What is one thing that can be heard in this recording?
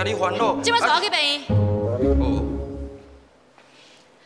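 A young woman answers anxiously close by.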